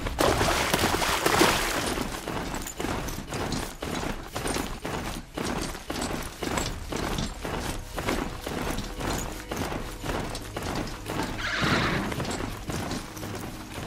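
Heavy mechanical hooves clank in a quick steady rhythm on the ground.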